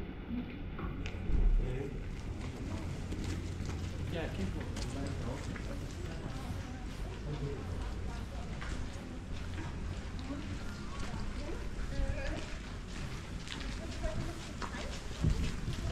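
Passers-by walk by on wet paving with soft footsteps.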